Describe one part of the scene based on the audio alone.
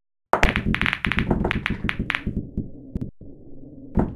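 Billiard balls clack together and scatter across a pool table on a break.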